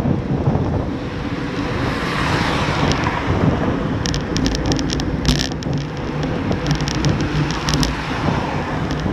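Bicycle tyres hum on the road.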